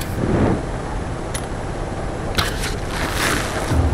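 An arrow thuds into a target.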